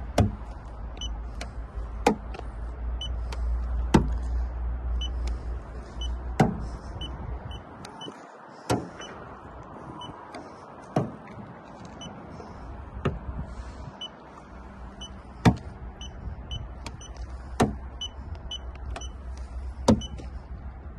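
A small plastic device taps against a car's body.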